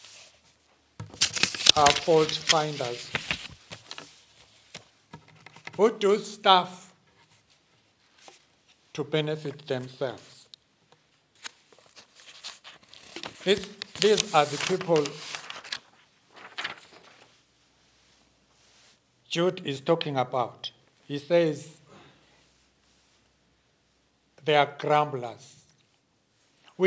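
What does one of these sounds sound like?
An elderly man speaks calmly and slowly through a microphone, with pauses between phrases.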